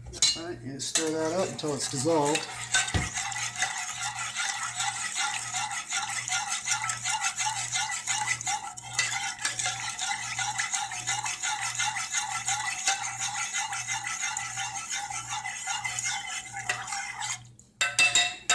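A spatula scrapes and stirs inside a metal pot.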